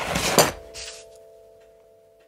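A hand pats down a sheet of paper with a brief rustle.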